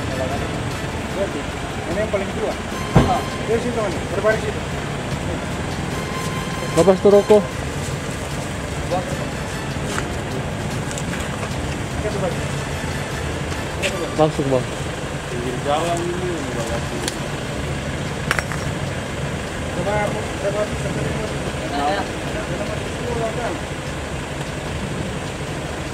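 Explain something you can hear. Young men talk and shout nearby.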